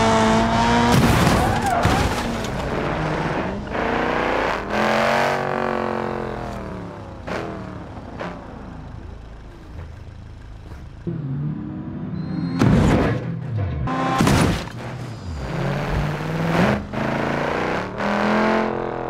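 A car crashes with a loud crunching metal impact.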